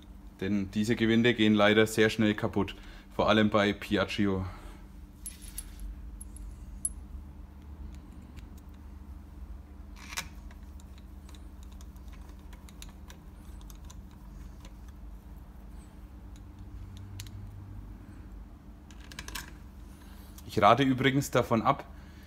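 Small metal parts clink softly as they are handled.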